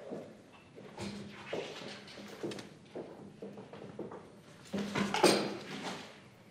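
Chairs and papers knock and rustle as people sit down.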